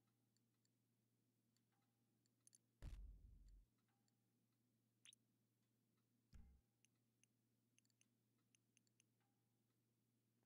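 Short electronic menu blips sound as options are clicked.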